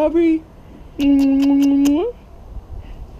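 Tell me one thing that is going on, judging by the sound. A man holds a long, loud sung note.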